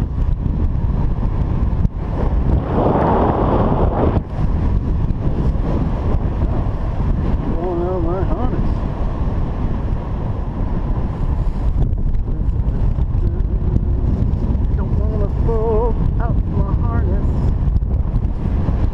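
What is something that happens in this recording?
Strong wind rushes and buffets steadily past.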